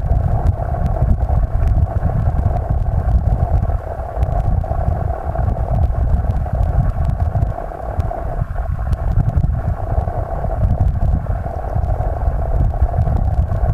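Small stones click and tick against each other in the current.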